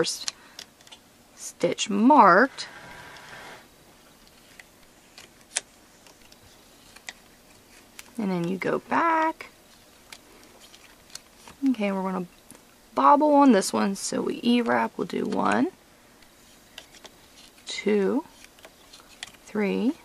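A metal hook clicks softly against a plastic loom.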